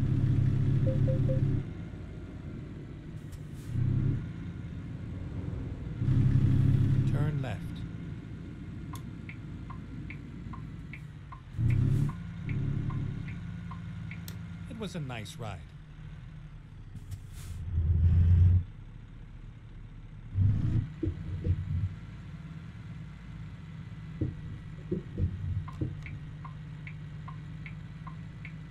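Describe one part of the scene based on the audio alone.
A truck engine rumbles steadily, with bursts of louder revving.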